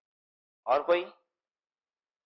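A man speaks briefly through a microphone, then falls silent.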